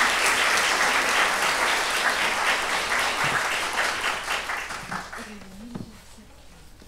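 An audience applauds in a large hall and the applause fades away.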